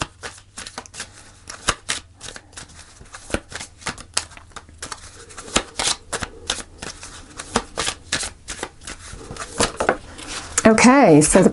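Playing cards are shuffled with quick, rapid riffling clicks.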